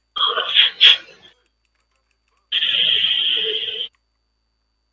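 Magic spell effects crackle and whoosh in short bursts.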